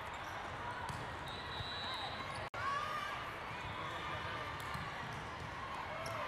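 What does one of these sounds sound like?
A volleyball is struck with a hard slap and bounces on the floor.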